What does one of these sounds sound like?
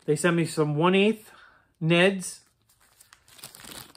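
A plastic bag crinkles in a man's hand.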